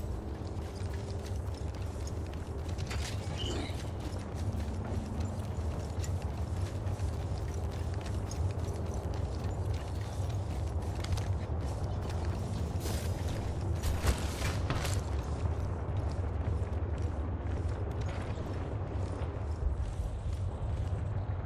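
Footsteps run quickly over dirt and wooden planks.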